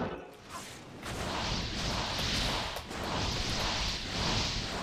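Magic spells crackle and whoosh in rapid bursts of a video game battle.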